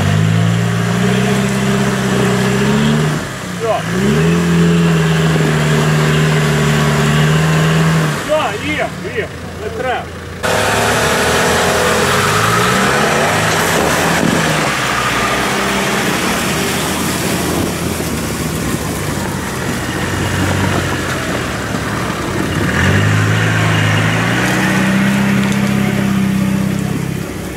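An off-road vehicle's engine revs and strains.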